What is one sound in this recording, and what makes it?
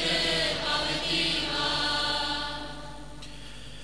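A congregation sings together.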